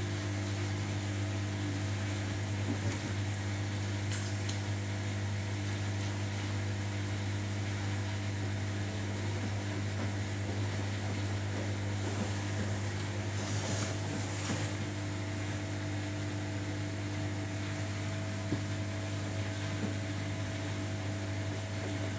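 A front-loading washing machine hums as its drum turns.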